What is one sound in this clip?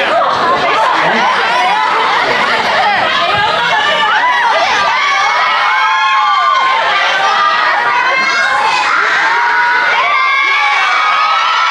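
A crowd of young people chatters and cheers loudly in an echoing hall.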